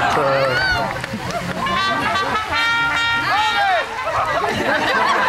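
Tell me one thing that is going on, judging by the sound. A crowd of men and women shouts and cheers close by.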